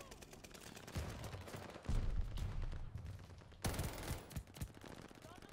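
Automatic rifle fire from a video game rings out in short bursts.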